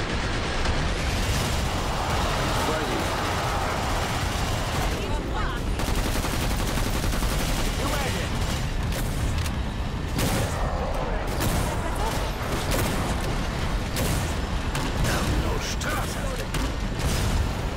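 Rapid gunfire blasts.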